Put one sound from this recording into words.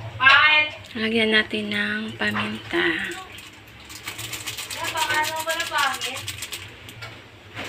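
Water pours into a metal pan.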